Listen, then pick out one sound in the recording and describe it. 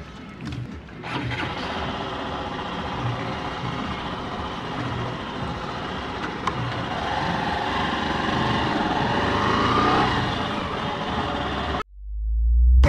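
A motorcycle engine hums steadily as the motorcycle rides along a road.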